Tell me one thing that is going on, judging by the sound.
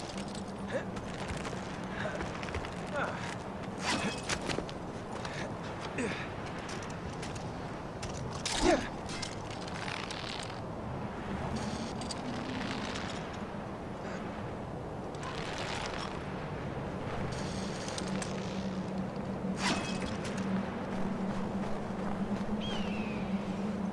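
Wind blows steadily across an open, exposed mountainside.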